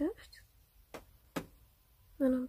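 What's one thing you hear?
A stone pendant taps softly as fingers turn it.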